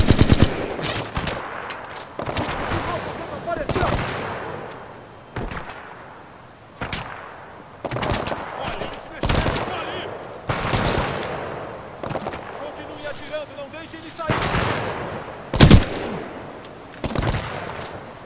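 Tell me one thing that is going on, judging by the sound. A rifle magazine clicks and clatters as it is reloaded.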